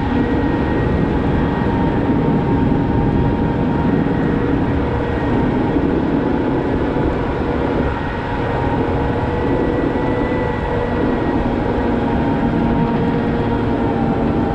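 A heavy diesel engine drones steadily close by.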